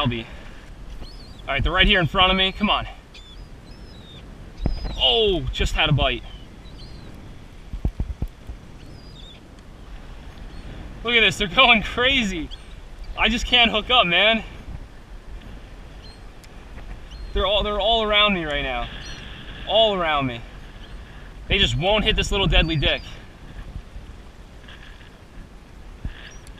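Small waves slap against a kayak.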